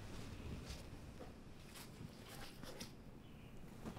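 A jacket's fabric rustles as it is pulled and handled close by.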